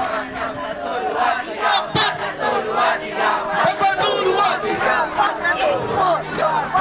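A crowd of young men chatter and call out outdoors.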